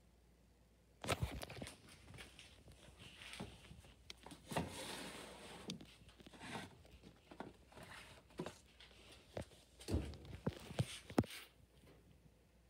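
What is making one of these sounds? Plastic packets rustle and crinkle close by.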